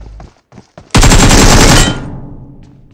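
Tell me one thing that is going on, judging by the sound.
A burst of gunfire rattles loudly.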